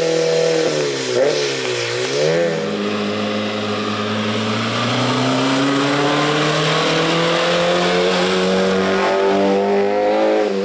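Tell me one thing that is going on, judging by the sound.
A rally car engine roars and revs hard, shifting gears as the car approaches and passes close by.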